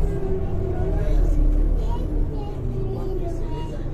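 Bus doors hiss and close.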